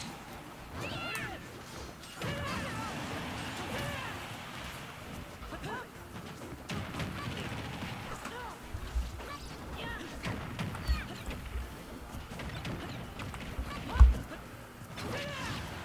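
Cartoonish blows and sword slashes land in quick bursts.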